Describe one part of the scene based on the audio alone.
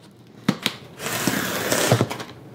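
Hands slide and handle a cardboard box.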